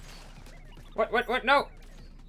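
Video game sound effects chirp in quick bursts.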